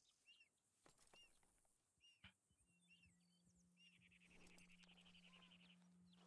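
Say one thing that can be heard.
Footsteps tread through grass.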